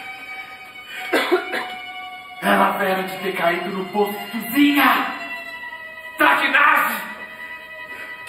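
A woman sings loudly in a large hall.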